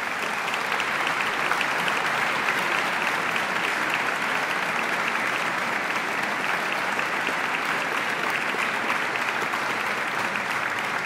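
A large audience applauds steadily in a big echoing hall.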